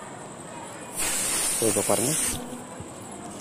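Gas hisses loudly out of a hose in a short burst.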